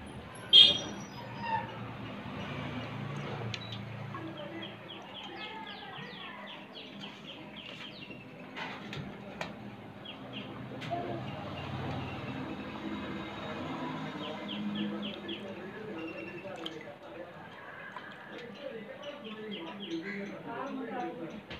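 Water sloshes and splashes softly in a bucket as a hand stirs it.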